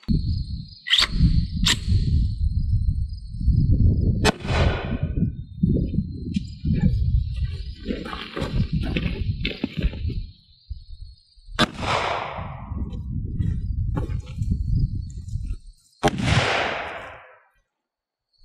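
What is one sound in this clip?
A gun fires loud single shots outdoors, each echoing off into the distance.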